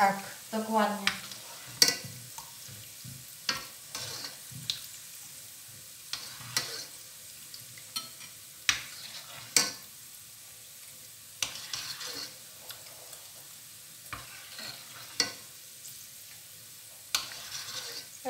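A metal ladle clinks against the sides of a pot.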